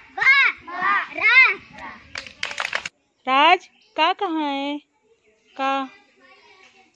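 Young children chant loudly in a sing-song voice nearby.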